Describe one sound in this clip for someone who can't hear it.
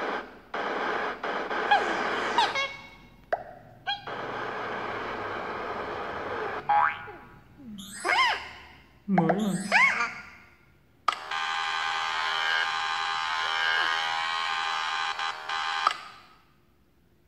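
Cheerful game music plays from a small tablet speaker.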